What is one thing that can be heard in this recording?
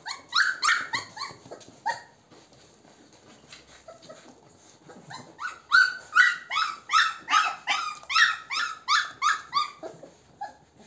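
Puppies squeal and whimper in short, high, repeated cries.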